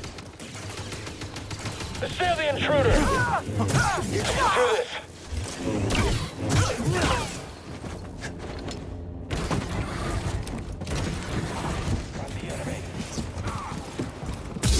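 An energy blade hums and swings with a buzzing whoosh.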